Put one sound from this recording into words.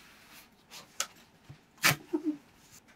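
A tape dispenser's blade snaps as the tape is cut.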